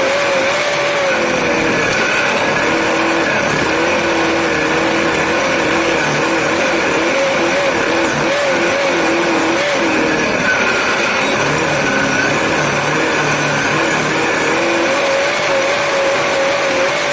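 A race car engine roars loudly, rising and falling in pitch as the driver speeds up and slows down.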